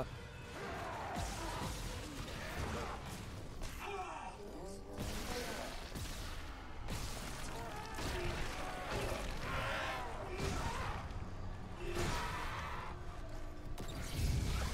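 A creature shrieks and snarls.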